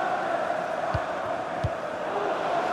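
A football is kicked hard with a dull thud.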